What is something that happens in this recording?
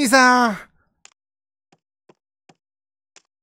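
Soft footsteps tap on a hard floor.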